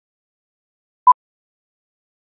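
A short beep sounds once.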